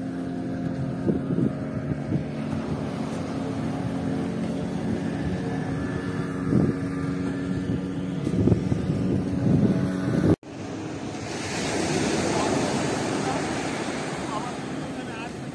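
Small waves wash onto a sandy shore.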